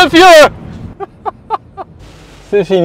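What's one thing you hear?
A man laughs in short bursts.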